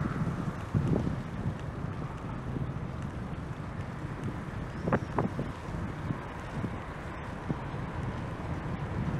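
Wind rushes and buffets steadily while riding along a road.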